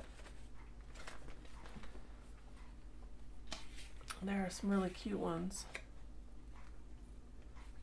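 Paper photographs rustle as they are handled.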